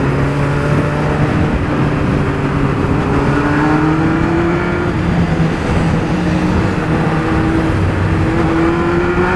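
A motorcycle engine hums steadily close by, its pitch slowly rising and falling.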